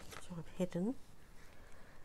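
A bone folder rubs firmly across paper.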